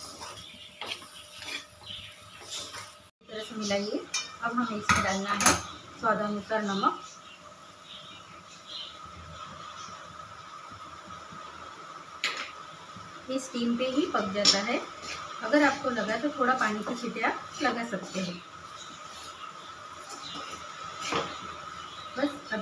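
A metal spatula scrapes and clatters against a metal pan.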